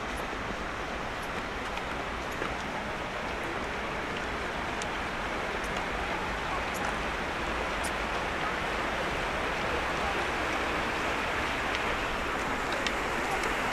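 Footsteps tap softly on a paved path.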